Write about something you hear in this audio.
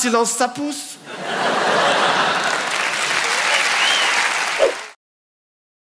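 An audience laughs and claps in a large hall.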